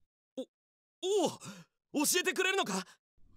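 A young man answers with surprise.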